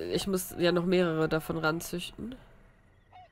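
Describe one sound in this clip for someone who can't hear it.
A young woman speaks with animation through a close microphone.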